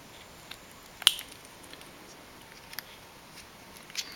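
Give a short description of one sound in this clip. Plastic parts click as hands fit them together.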